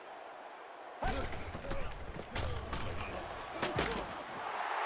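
Football players crash together with heavy thuds.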